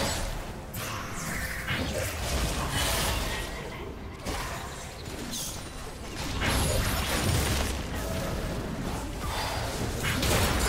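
Battle effects whoosh, crackle and boom in quick bursts.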